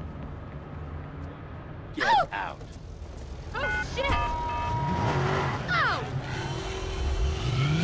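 A car engine idles and then revs as the car drives off.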